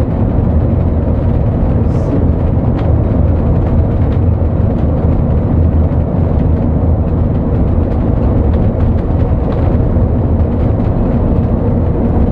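A bus engine drones steadily from inside the cab.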